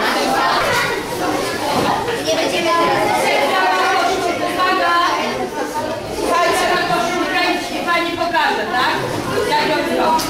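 A woman speaks with animation to children.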